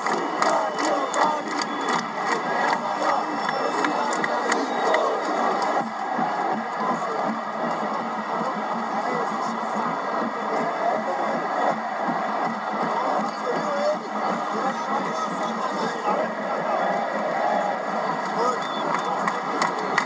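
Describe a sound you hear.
A huge stadium crowd sings and chants loudly, echoing all around.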